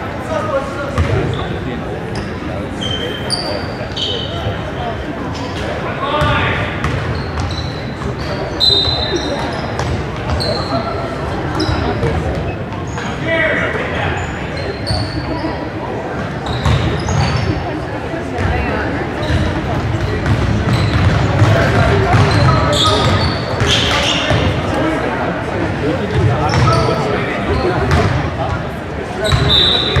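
A crowd of spectators murmurs and calls out.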